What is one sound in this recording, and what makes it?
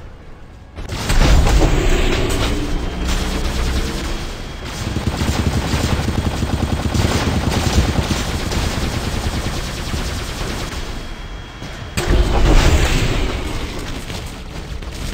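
A heavy robot stomps and whirs as it moves.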